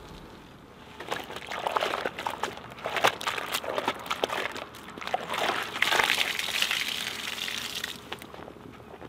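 A sponge squelches and splashes in a bucket of soapy water.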